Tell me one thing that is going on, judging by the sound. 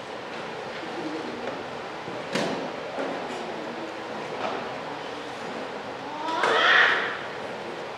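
A man speaks quietly nearby in an echoing room.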